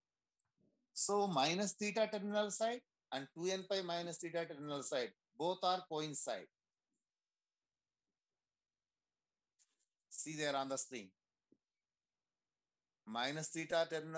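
A man explains calmly through an online call, in short bursts with pauses.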